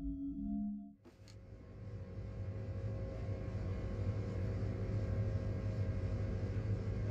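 A deep mechanical hum drones steadily.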